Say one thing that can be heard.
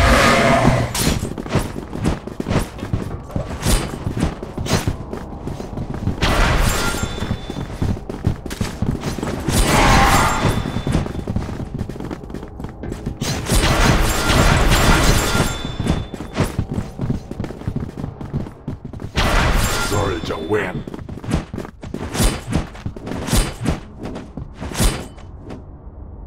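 A game's weapon fires and slashes in repeated bursts.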